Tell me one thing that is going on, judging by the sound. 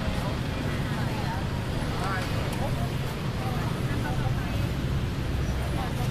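Voices of passers-by murmur in the background.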